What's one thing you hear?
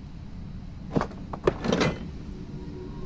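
A metal mechanism clanks into place.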